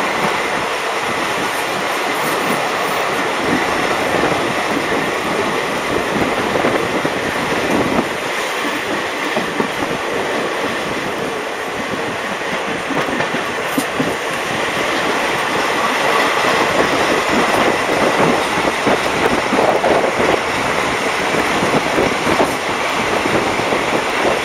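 A train's carriages rumble and clatter along the track.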